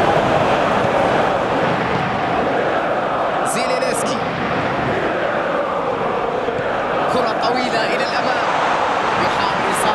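A large crowd roars and chants steadily in a big stadium.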